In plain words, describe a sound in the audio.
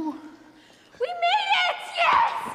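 A young girl speaks excitedly.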